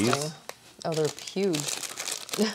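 Plastic wrap crinkles as hands handle it.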